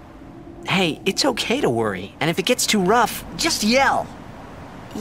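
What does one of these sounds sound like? A young man speaks reassuringly.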